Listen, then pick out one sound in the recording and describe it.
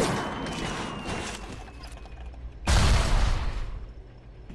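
A pistol is reloaded with a metallic clack.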